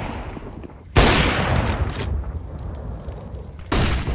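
Fire crackles and roars nearby.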